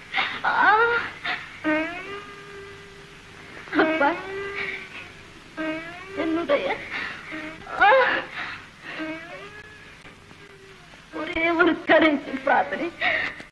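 A woman sings a mournful, wailing song with long drawn-out notes.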